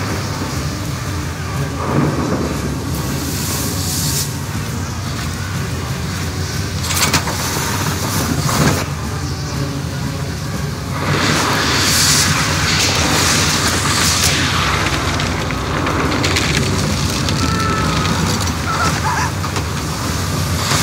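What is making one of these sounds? A storm wind roars steadily.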